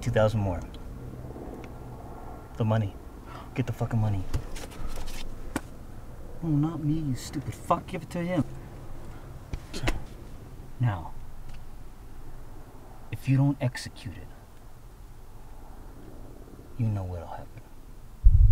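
A man speaks tensely in a low voice, close by.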